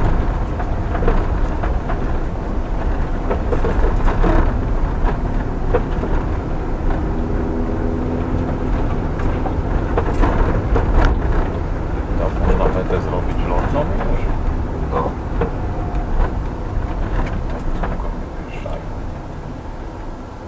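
A car engine rumbles steadily at low speed.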